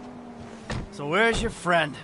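A car engine starts and revs.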